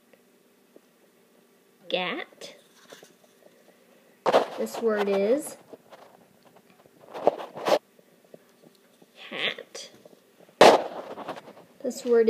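A stiff paper card is flipped over and slid across a tabletop.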